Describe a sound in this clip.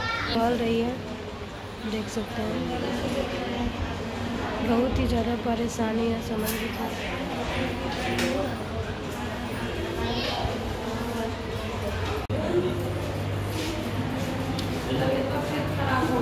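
A young woman argues back nearby.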